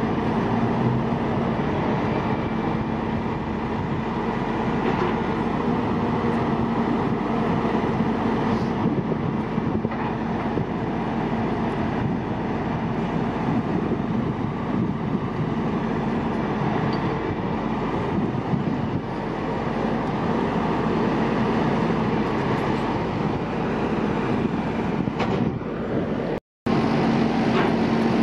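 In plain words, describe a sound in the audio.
A heavy truck engine rumbles steadily outdoors.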